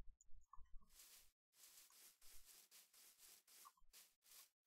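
Footsteps crunch softly through grass at a steady pace.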